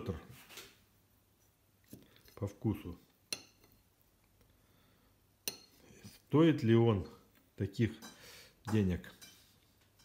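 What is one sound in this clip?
A fork taps and scrapes on a glass plate.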